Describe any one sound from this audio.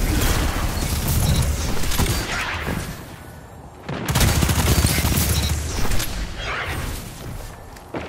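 Gunfire blasts rapidly.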